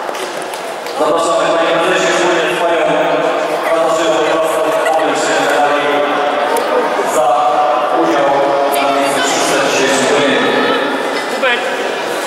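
A group of young boys sings together in an echoing hall.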